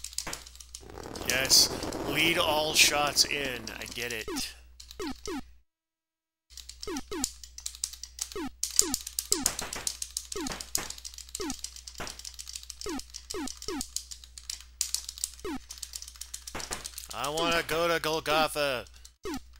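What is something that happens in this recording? Video game explosions crackle and rumble.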